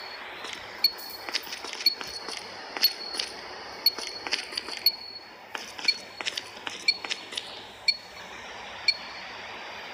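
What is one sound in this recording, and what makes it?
A countdown timer beeps once every second.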